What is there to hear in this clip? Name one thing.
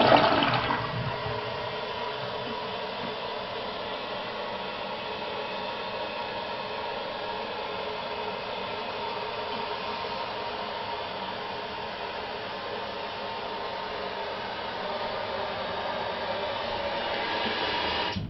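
Water hisses steadily as a toilet tank refills.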